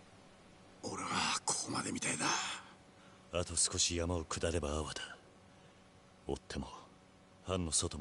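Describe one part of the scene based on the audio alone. A young man speaks firmly and tensely, close by.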